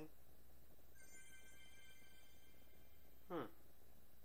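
A short electronic jingle chimes with steady high tones.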